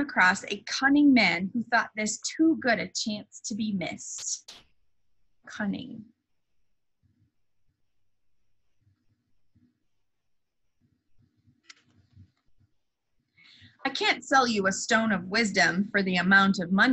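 A young woman speaks calmly into a microphone, reading out.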